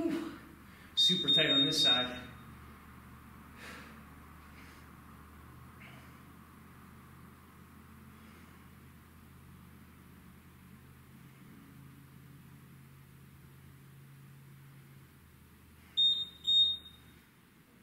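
A timer beeps.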